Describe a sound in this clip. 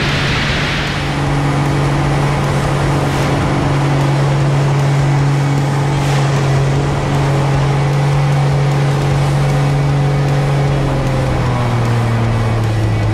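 Wind rushes past the cockpit.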